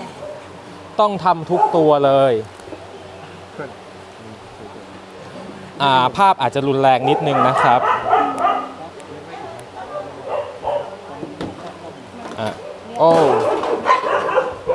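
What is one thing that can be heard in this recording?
A dog whines and yelps in distress.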